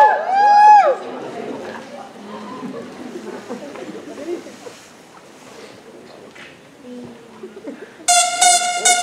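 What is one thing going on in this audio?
An audience murmurs quietly in a large hall.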